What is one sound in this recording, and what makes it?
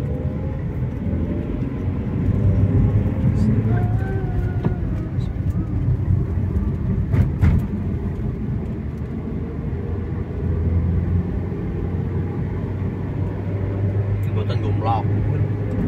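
A car engine hums steadily from inside the cabin as it drives.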